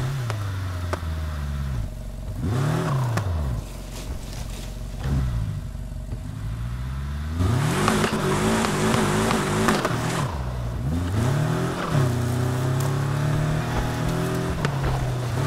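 Tyres skid and scrape on sand.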